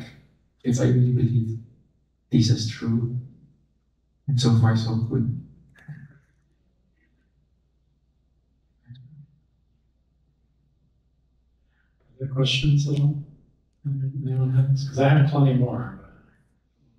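A man speaks into a microphone in phrases, with pauses between them.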